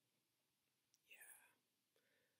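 A young woman speaks briefly, close by.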